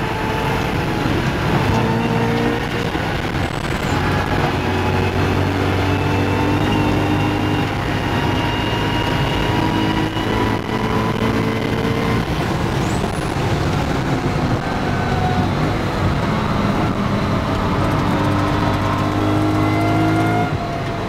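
A race car engine roars loudly from inside the cabin, rising and falling as the driver shifts gears.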